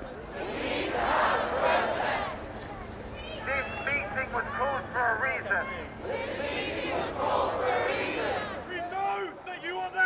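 A young man shouts through a megaphone outdoors.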